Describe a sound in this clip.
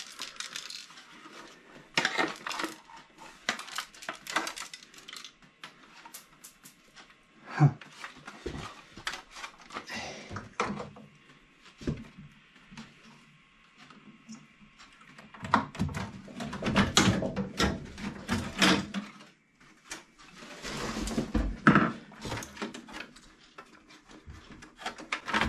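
Plastic parts click and rattle as a man handles a circuit board.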